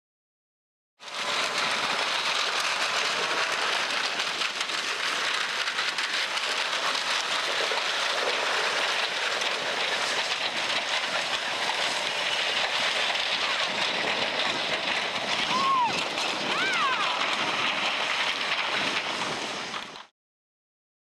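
A snowmobile engine roars nearby.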